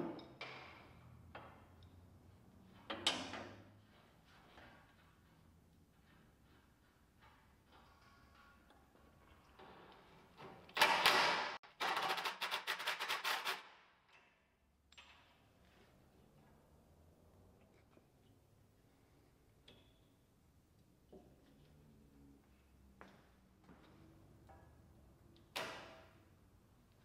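Metal tools clank against metal parts.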